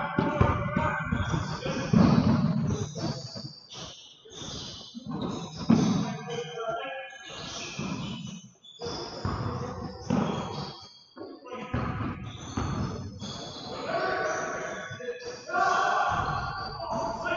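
Sneakers squeak on a hard court in a large echoing gym.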